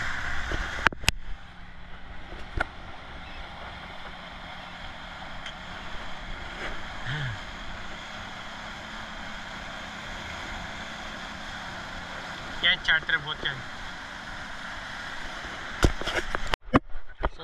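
Water splashes and rushes along the side of a moving boat.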